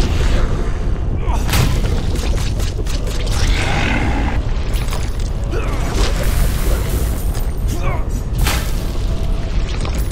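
Sword blows strike with sharp slashing hits.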